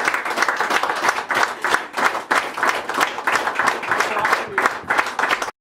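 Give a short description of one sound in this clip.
A group of people clap their hands in steady applause nearby.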